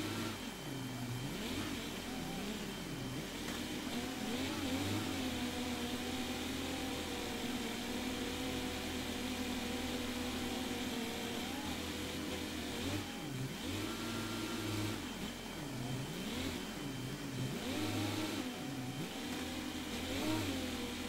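A diesel tractor engine drones in a video game.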